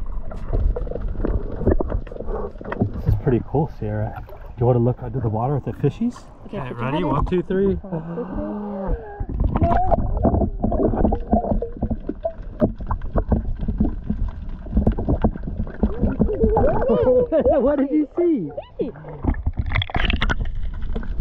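Water sloshes and gurgles.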